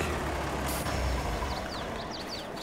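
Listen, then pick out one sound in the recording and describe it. A tractor engine rumbles at low speed.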